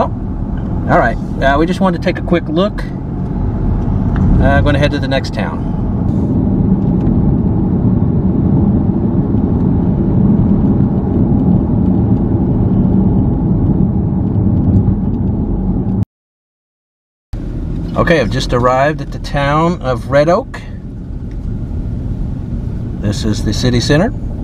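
A car drives along a paved road with a steady low rumble.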